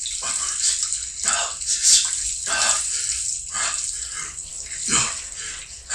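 A man splashes water onto his face.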